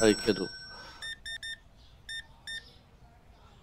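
A checkout scanner beeps several times in quick succession.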